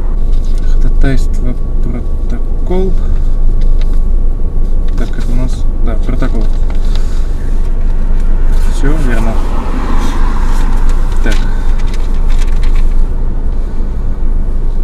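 A car engine idles with a low, steady hum.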